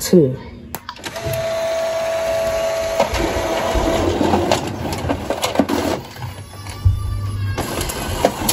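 A printer hums steadily as it runs.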